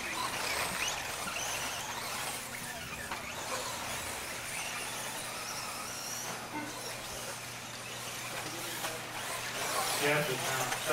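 Small electric motors whine at high pitch as toy racing cars speed around.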